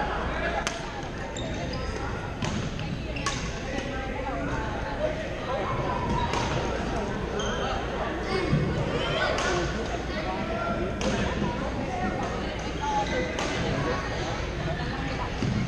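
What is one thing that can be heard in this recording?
Many players call out and chatter in the background of a large echoing hall.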